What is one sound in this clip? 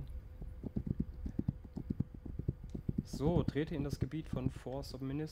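A horse gallops, its hooves thudding quickly and steadily on soft ground.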